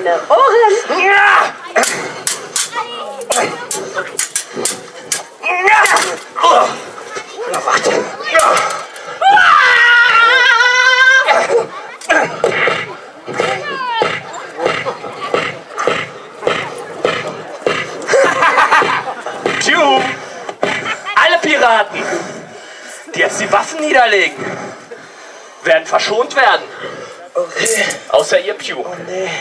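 Men shout and speak with animation outdoors.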